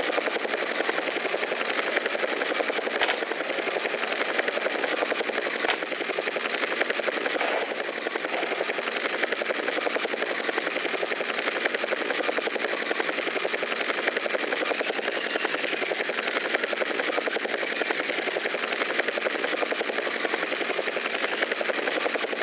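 A helicopter's rotor chops steadily with a whining engine.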